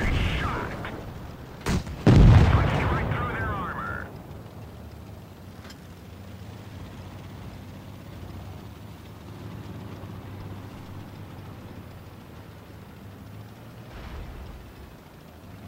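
A tank engine rumbles low and steadily.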